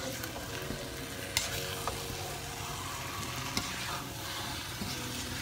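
A metal spoon scrapes and clinks against a metal pan.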